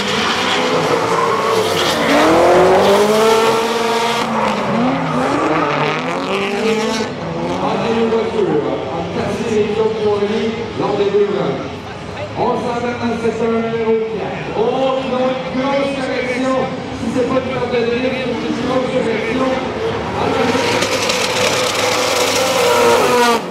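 Tyres screech and squeal on the track.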